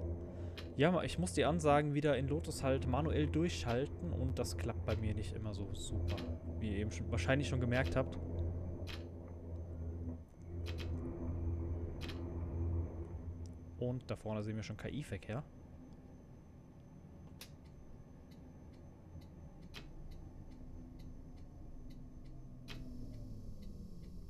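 A low-floor tram hums as it rolls along rails.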